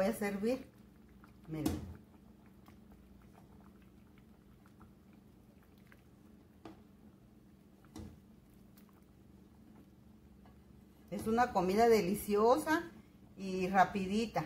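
A metal ladle clinks against a pot and a bowl.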